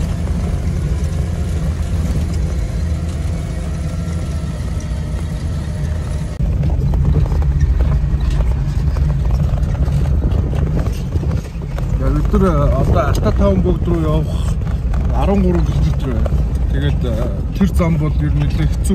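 A vehicle engine rumbles steadily while driving over a bumpy dirt road.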